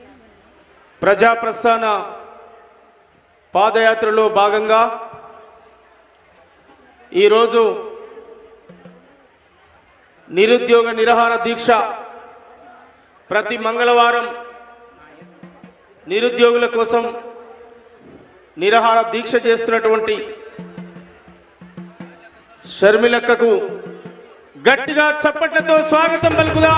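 A man sings loudly through a microphone and loudspeakers in short repeated phrases.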